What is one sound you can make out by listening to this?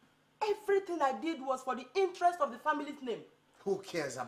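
A middle-aged woman speaks with agitation close by.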